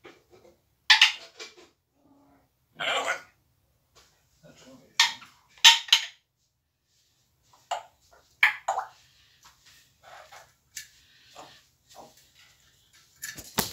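A parrot squawks loudly in short bursts.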